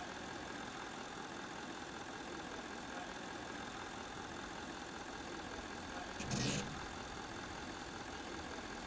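A truck engine idles steadily.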